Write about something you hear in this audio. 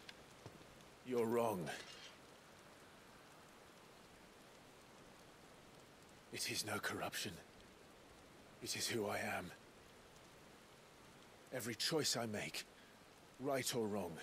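A second man answers in a low, firm voice.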